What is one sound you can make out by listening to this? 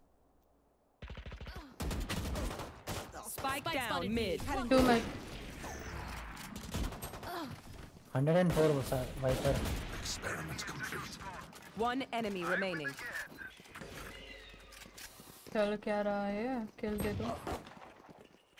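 Gunshots crack in quick bursts from a game.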